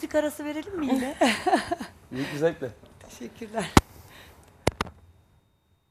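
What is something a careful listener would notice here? A woman laughs brightly.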